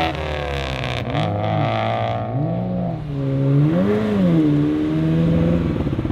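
A sports car engine revs in short, rising bursts.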